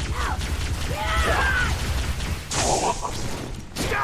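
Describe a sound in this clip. An explosion bursts with a loud crackle.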